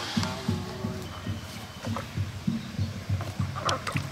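Feet splash and swish in a tub of water.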